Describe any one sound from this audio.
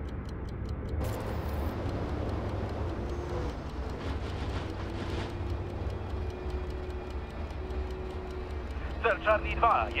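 Tank tracks clank and rattle over pavement.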